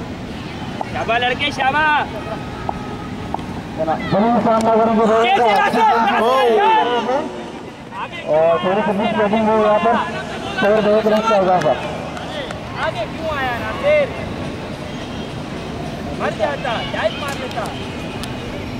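Men shout excitedly outdoors at a distance.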